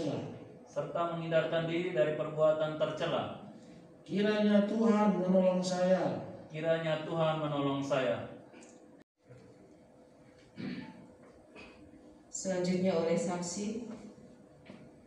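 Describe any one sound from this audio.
A man speaks slowly and solemnly through a microphone.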